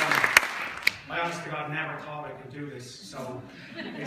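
A man speaks to the audience through a microphone, calmly, echoing in the hall.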